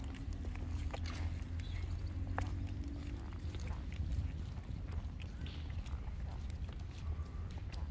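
Footsteps tap on a pavement outdoors.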